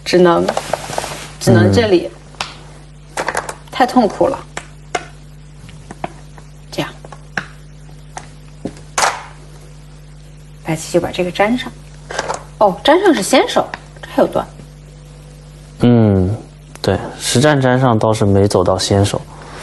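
A young woman talks calmly through a microphone, with pauses.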